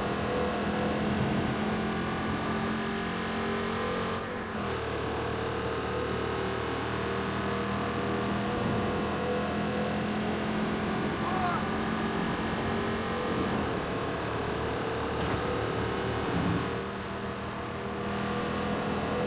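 A car engine hums steadily, rising and falling as the car drives along.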